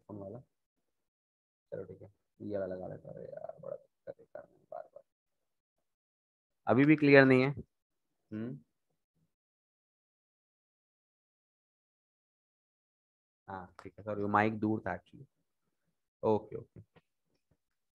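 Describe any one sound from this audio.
A young man speaks through an online call, explaining with animation.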